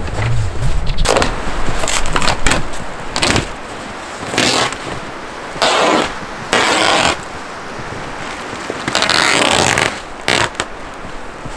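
Plastic sheeting rustles and crackles as it is torn away.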